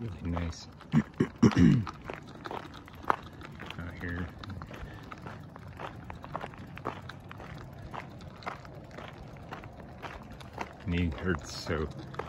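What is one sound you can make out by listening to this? Footsteps crunch on a gravel road.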